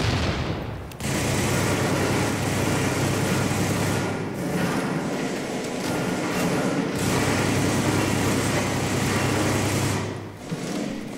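A rifle fires repeatedly at close range.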